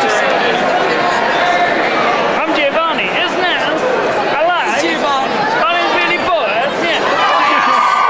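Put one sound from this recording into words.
Young women talk and laugh close by.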